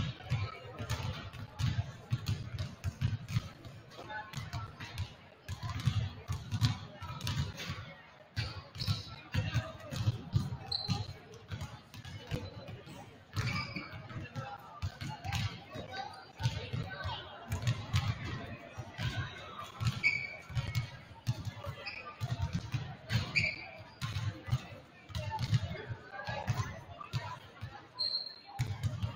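Basketballs bounce repeatedly on a wooden floor in a large echoing gym.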